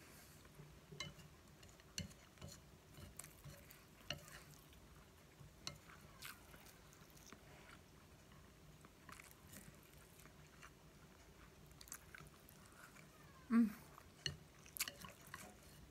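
Chopsticks tap and scrape against a plate.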